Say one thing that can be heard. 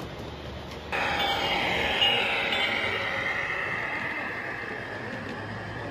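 A model passenger car rolls past with a screeching of wheels that slowly fades.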